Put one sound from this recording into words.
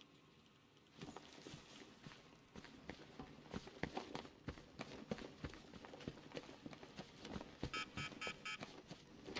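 Heavy footsteps walk across a hard floor.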